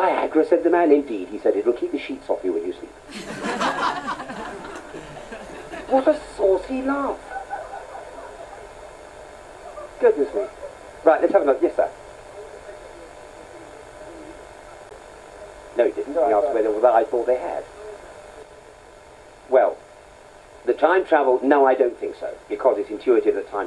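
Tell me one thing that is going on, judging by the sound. A man speaks into a microphone over loudspeakers in an echoing hall, pausing between phrases.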